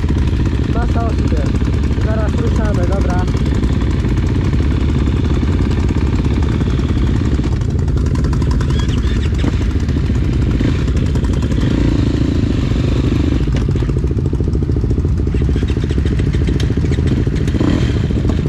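A quad bike engine idles close by with a steady low rumble.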